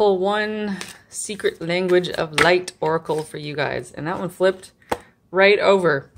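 Playing cards riffle and slide against each other as they are shuffled.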